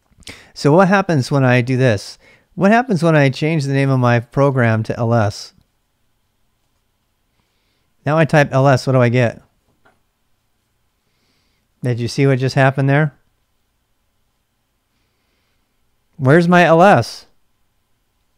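A middle-aged man talks calmly and close to a microphone, in short bursts with pauses.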